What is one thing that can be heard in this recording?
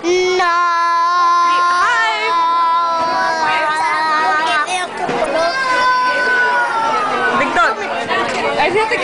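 A young boy shouts and squeals loudly close by.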